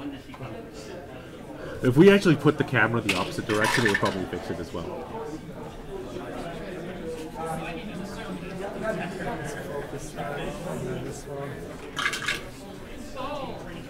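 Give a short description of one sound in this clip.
Dice rattle and clatter in a tray.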